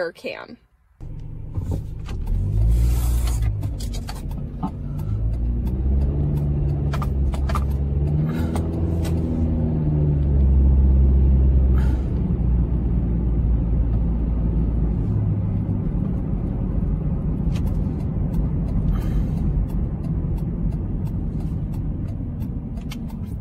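A car engine rumbles low while driving, its pitch rising and falling.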